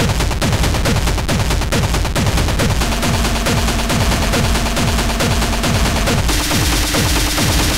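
Loud electronic dance music with a pounding kick drum plays steadily.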